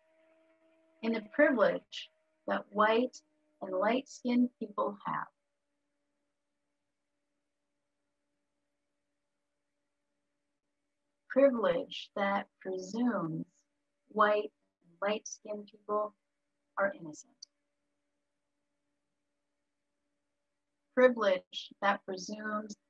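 A middle-aged woman speaks calmly through an online call, in short phrases with pauses.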